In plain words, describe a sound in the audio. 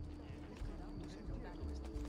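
Footsteps run on stone paving.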